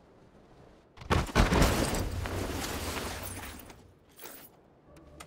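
A parachute canopy flaps loudly as it lands and collapses.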